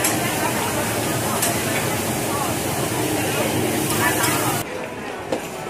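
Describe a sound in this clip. Food sizzles loudly on a hot griddle.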